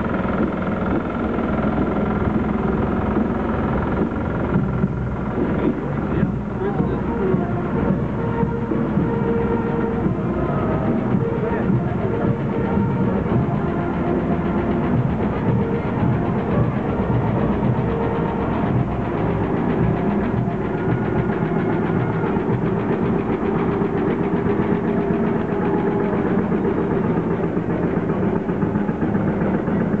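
A crowd of onlookers murmurs outdoors.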